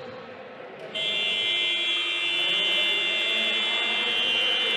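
A loud buzzer sounds steadily.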